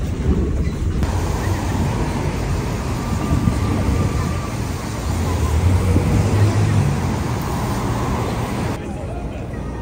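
Traffic rumbles past on a busy city street.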